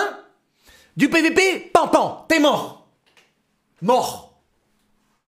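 A young man shouts excitedly.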